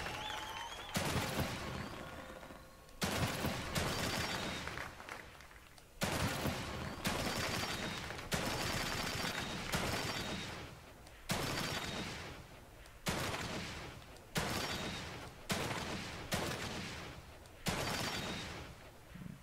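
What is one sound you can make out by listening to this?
Gunshots ring out one after another, each followed by a long echoing fade.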